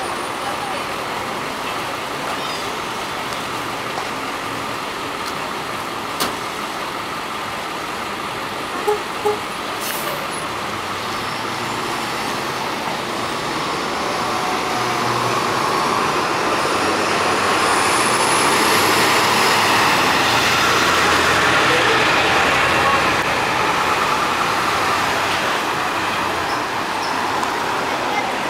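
A bus engine idles and then rumbles louder as the bus pulls away.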